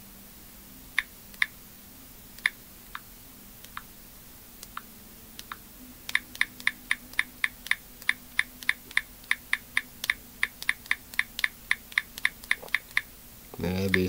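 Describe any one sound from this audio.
Small clicks tick quickly and evenly close by.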